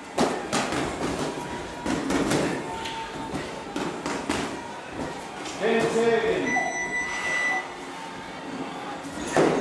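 Padded boxing gloves thud against a body and gloves in sparring.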